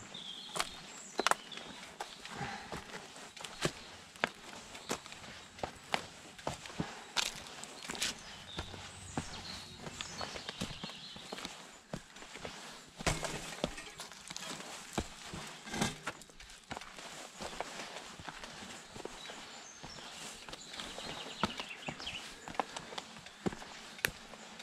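A bicycle frame rattles and clunks over bumps.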